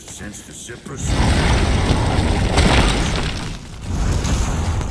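A heavy door grinds and rumbles open.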